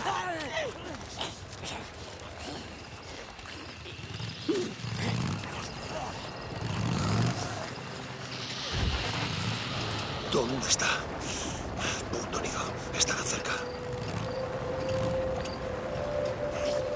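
A motorcycle engine rumbles and revs as the bike rides over rough ground.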